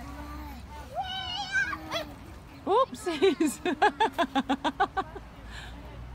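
A young girl shrieks and laughs in quick bursts close by.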